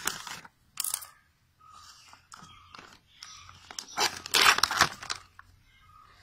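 A thin plastic tray crinkles and crackles as hands handle it.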